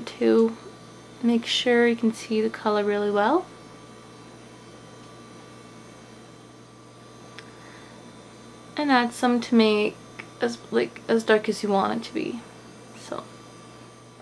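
A young woman talks calmly, close to the microphone.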